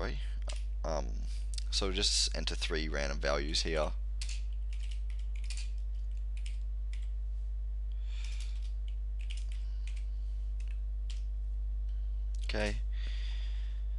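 Keys clack on a computer keyboard in quick bursts.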